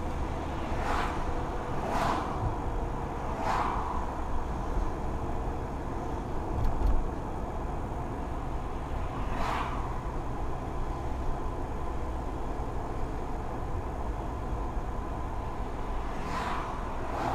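Oncoming cars whoosh past one after another.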